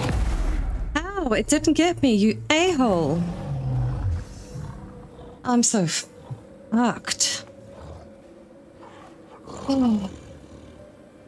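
A bear growls and roars close by.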